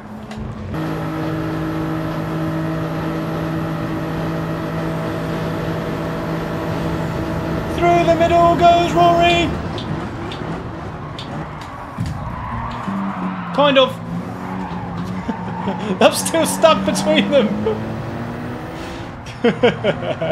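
A race car engine roars at high revs through a loudspeaker.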